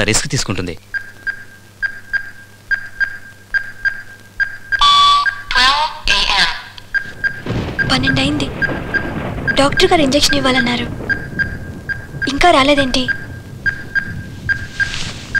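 A hospital monitor beeps steadily.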